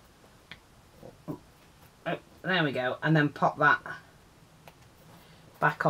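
Fabric rustles softly under hands.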